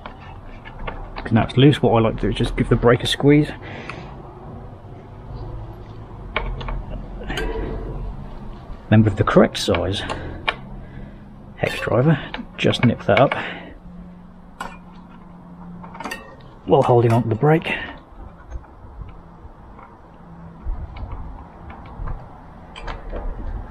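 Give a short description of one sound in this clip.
A hex key clicks and scrapes against a bicycle's bolts.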